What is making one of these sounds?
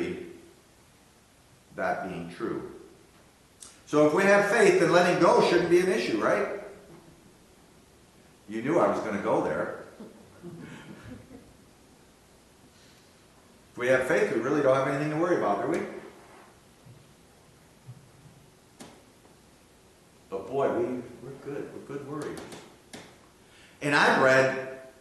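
An older man speaks calmly through a microphone, pausing between phrases.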